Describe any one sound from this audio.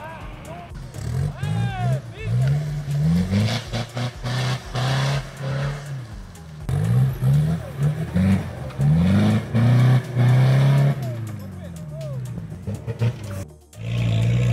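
An off-road vehicle's engine revs hard again and again as it climbs.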